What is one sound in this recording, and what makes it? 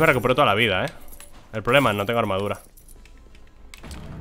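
Coins clink and jingle.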